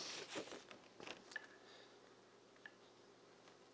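A small metal tool clicks and taps on paper.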